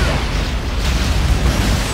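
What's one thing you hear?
An energy gun fires with a crackling zap.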